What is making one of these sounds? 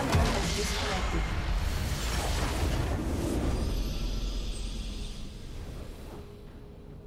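A huge explosion booms and rumbles, then fades away.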